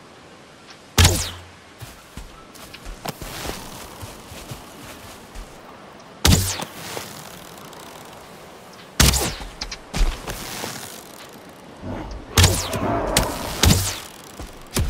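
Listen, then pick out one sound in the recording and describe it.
Sharp thuds of a weapon striking sound now and then.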